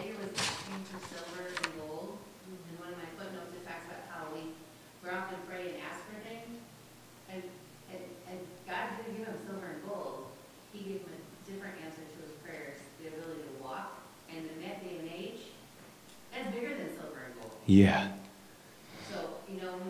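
A man lectures calmly through a microphone in an echoing hall.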